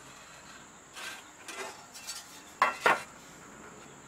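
A metal saw blade clanks as it is lifted and set down on a wooden bench.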